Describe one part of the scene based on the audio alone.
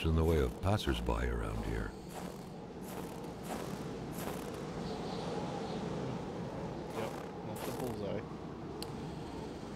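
Wind blows steadily through a snowstorm outdoors.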